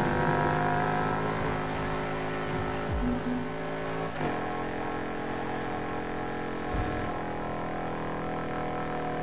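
A racing SUV's engine roars at speed.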